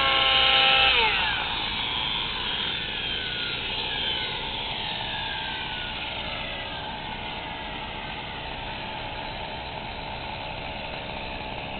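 Model helicopter rotor blades whir and slowly wind down.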